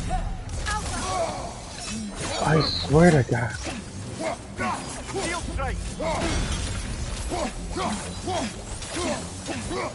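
Magic blasts crackle and whoosh in a fight.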